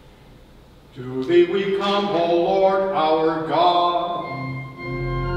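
An elderly man chants in a sung voice, echoing in a large hall.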